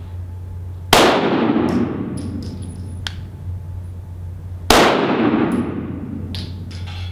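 A pistol fires loud shots that echo through a large hall.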